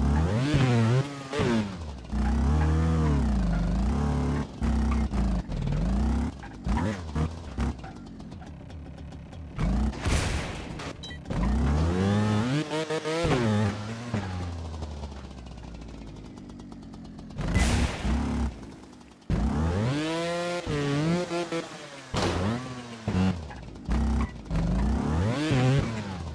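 A motorbike engine revs up and down in bursts.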